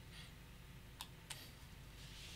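Game pieces click lightly on a table.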